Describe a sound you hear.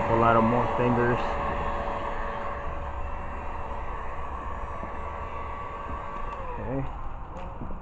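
A power drill whirs steadily, then winds down.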